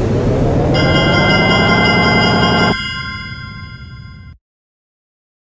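Upbeat electronic music plays loudly, then fades away.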